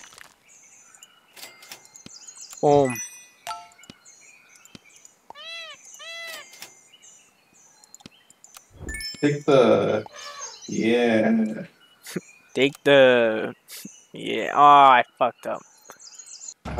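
Short playful game sound effects chime and pop.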